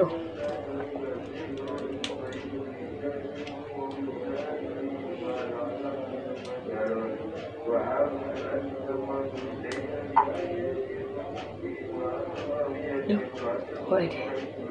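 Small plastic toy parts click and tap as they are handled.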